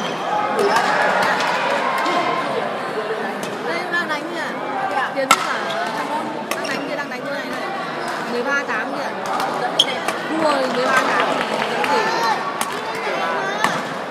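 Many people chatter in the background of the hall.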